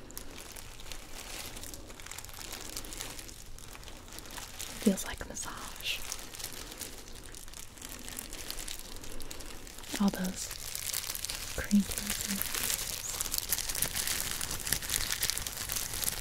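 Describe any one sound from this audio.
Rubber gloves rustle and crinkle close to a microphone.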